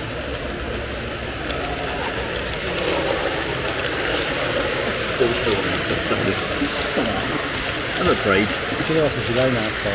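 A model train hums past close by.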